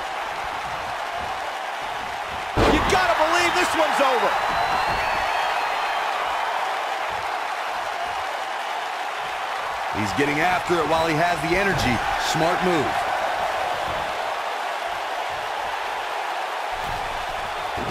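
A large crowd roars and cheers steadily in an echoing arena.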